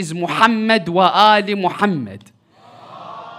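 A young man chants loudly into a microphone.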